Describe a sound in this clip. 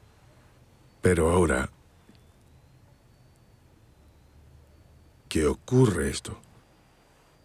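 A second man speaks in reply, briefly and calmly.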